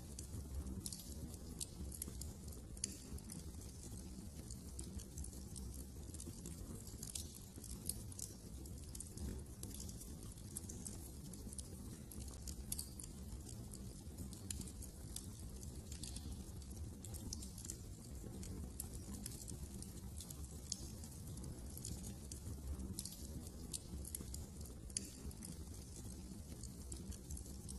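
A wood fire crackles and pops steadily.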